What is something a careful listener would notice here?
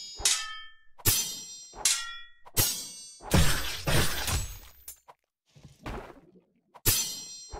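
Blades whoosh through the air in quick, repeated swings.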